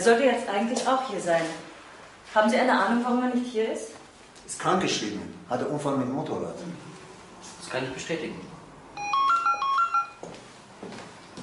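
A woman talks firmly nearby.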